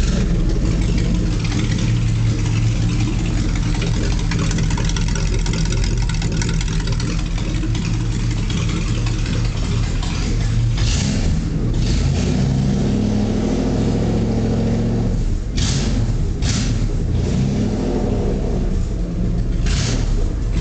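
A car engine idles steadily close by.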